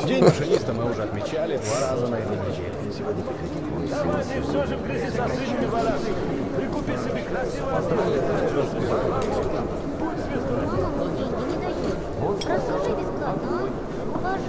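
A crowd of men murmur and talk in a large echoing room.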